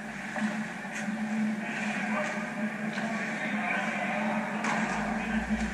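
Hockey sticks tap faintly on the ice in the distance.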